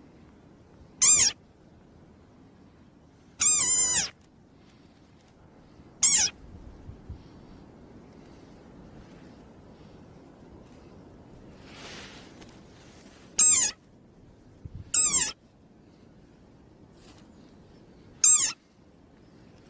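A small frog gives short, shrill squeaks.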